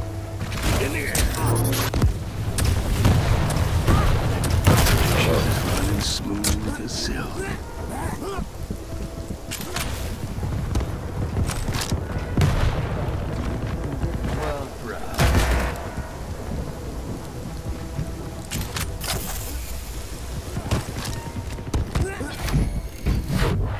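Footsteps thud quickly across hard ground.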